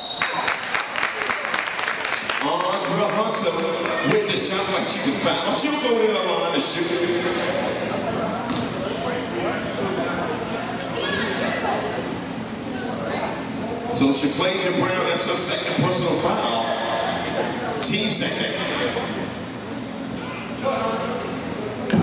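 Young girls call out and chatter across the echoing gym.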